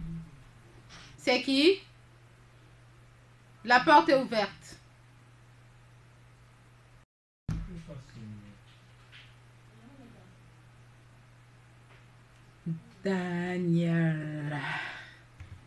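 A woman sobs and wails loudly nearby.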